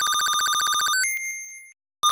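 A bright electronic chime rings out and fades.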